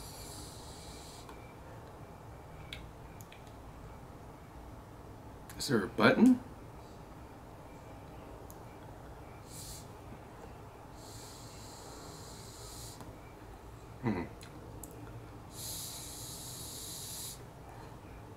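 A young man draws on a vape with a soft, airy hiss.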